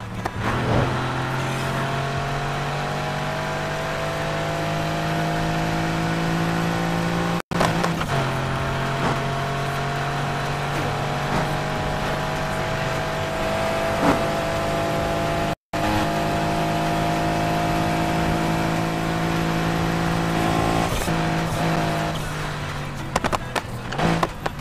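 A sports car engine roars steadily at high speed.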